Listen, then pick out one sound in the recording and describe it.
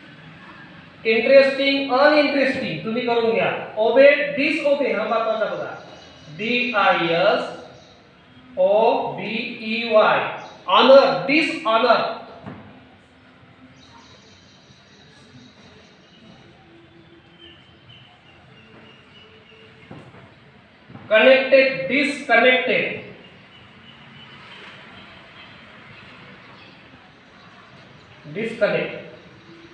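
A man speaks clearly and at a measured pace, close by.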